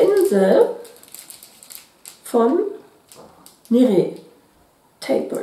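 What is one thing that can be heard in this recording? A middle-aged woman speaks calmly and closely into a microphone.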